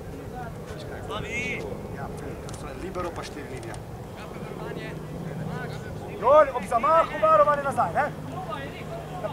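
Young men shout loudly to one another outdoors.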